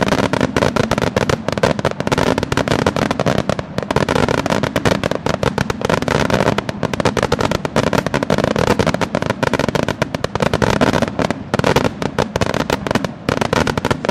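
Fireworks burst and crackle rapidly in quick succession.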